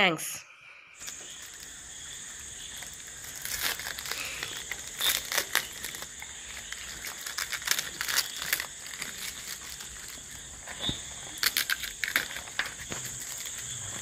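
Paper and cardboard rustle and crinkle close by.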